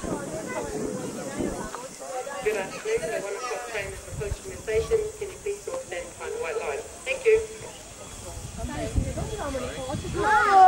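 A steam locomotive chuffs as it approaches.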